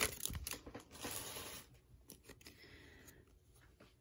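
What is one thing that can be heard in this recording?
Cards slide against each other.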